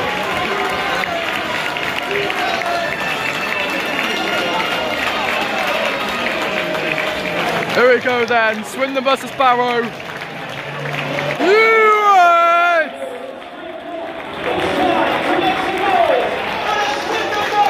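A large stadium crowd chatters and murmurs outdoors.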